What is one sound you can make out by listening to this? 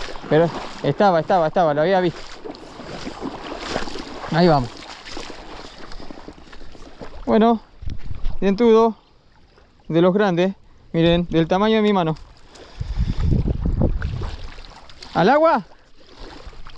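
Water laps gently against a muddy shore.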